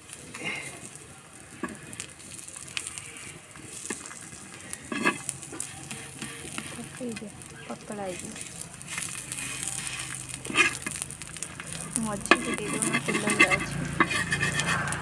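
A metal spatula scrapes and taps against an iron pan.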